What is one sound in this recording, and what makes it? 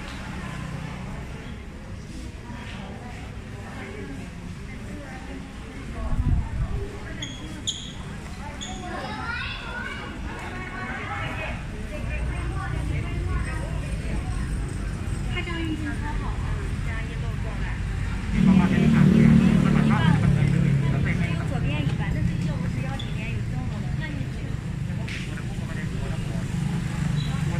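A crowd of men and women chatter around a busy indoor hall.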